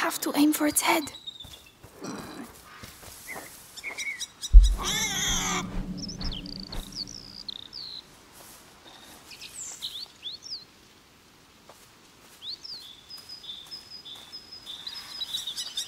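Footsteps rustle quickly through tall grass and dry leaves.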